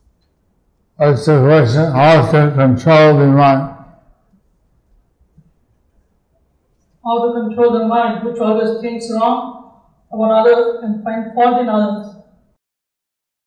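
A middle-aged man sings in long, drawn-out phrases into a microphone, with pauses between them.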